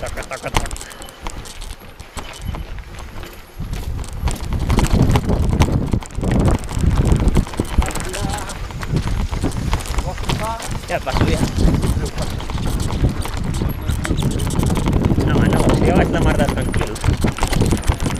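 A bicycle rattles over bumps on a rough track.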